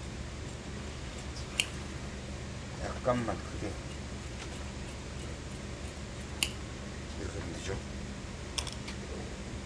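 Large scissors snip through thick fabric.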